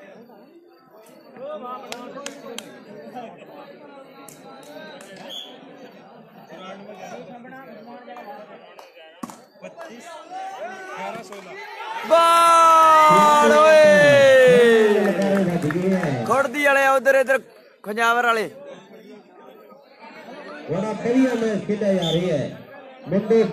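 A crowd of young men chatter and call out outdoors.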